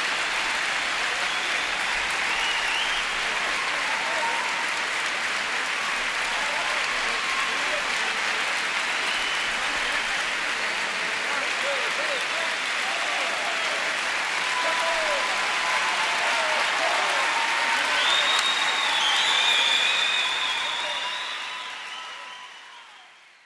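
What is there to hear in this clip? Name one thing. A large audience applauds loudly in a big echoing hall, then the applause fades away.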